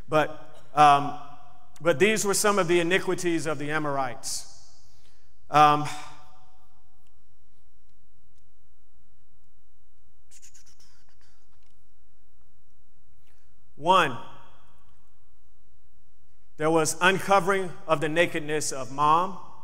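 A man speaks slowly and deliberately into a microphone, with long pauses.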